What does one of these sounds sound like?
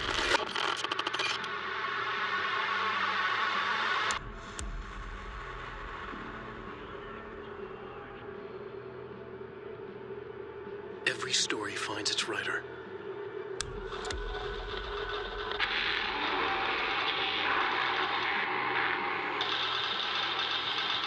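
A man speaks through a television loudspeaker.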